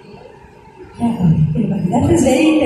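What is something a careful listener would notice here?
A young woman speaks through a loudspeaker microphone.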